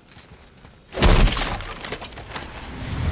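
A heavy wooden chest bursts open with a loud thud.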